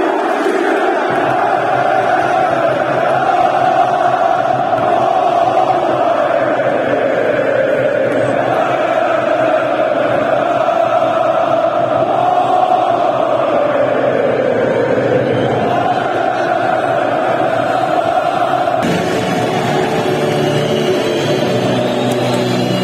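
A large stadium crowd chants loudly in unison, echoing under the roof.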